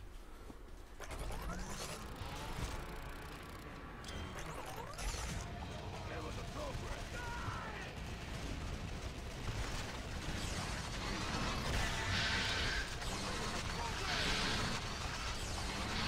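Gunfire and blasts rattle in a fast, noisy battle.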